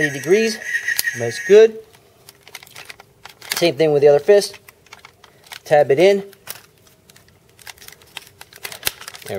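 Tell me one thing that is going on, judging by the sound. Plastic toy parts click and clack as hands handle them.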